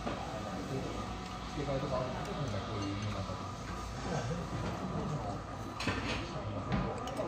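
A woman slurps noodles close by.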